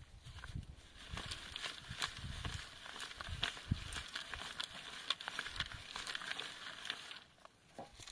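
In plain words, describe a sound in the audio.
Soil hisses and rattles as a sieve is shaken back and forth.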